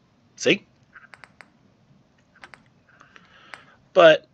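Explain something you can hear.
Soft electronic clicks sound as a menu selection moves.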